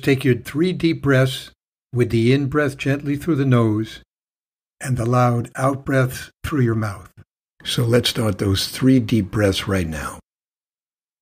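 An elderly man speaks calmly and warmly, close to a microphone.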